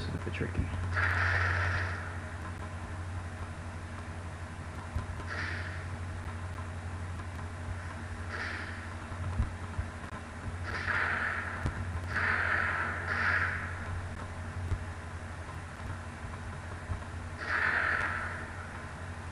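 Cartoonish explosions burst now and then with a short hissing whoosh.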